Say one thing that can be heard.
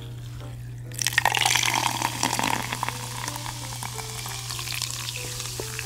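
A fizzy drink pours from a can into a glass and fizzes.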